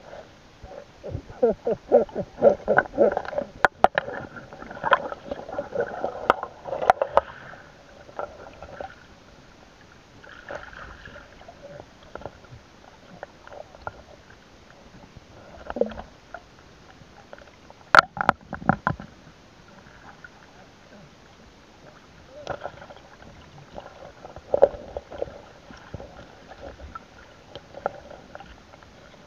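A net scrapes and knocks against rocks underwater.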